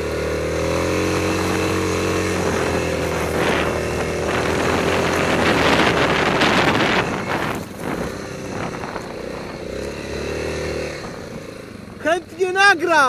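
A Yamaha Grizzly 660 ATV engine labours as the quad climbs a snowy hill.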